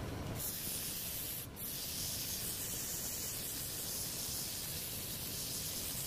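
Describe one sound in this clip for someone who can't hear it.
A wood lathe whirs steadily as it spins.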